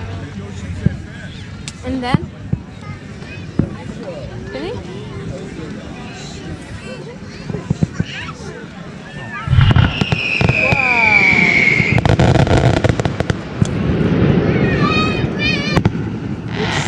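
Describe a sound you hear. Fireworks pop and bang in the distance.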